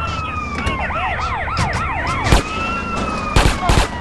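Police sirens wail and swoop up and down.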